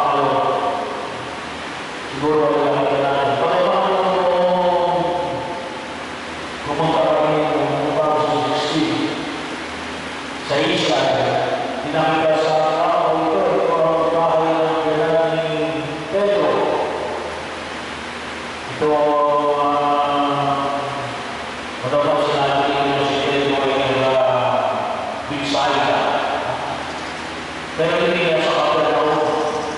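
A middle-aged man sings in long phrases through a microphone and loudspeaker.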